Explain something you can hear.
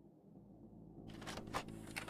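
A videotape slides into a player with a few clicks.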